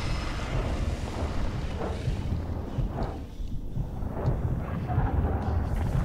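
Large leathery wings beat with deep, rumbling whooshes.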